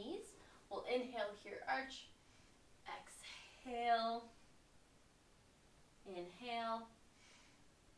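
A young woman speaks calmly nearby, giving instructions.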